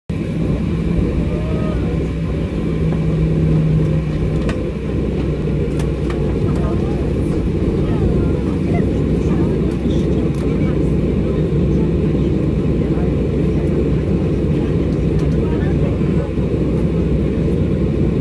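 Aircraft wheels rumble and thump over a runway.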